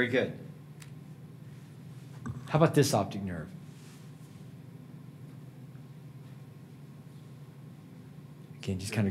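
A man lectures calmly through a microphone, with long pauses.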